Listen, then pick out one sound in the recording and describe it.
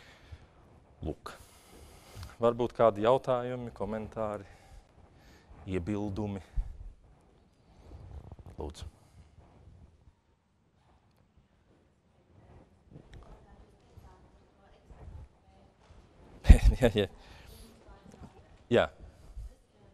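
A young man speaks calmly to an audience, with long pauses.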